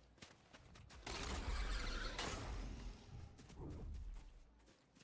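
A loud rushing whoosh sweeps up as a video game character launches into the air.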